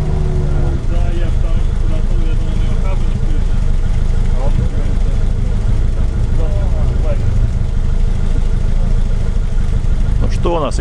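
An engine revs loudly as an off-road vehicle churns through deep mud.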